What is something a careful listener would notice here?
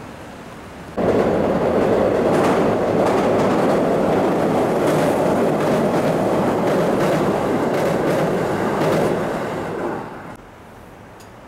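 A train rumbles and clatters loudly across a metal bridge.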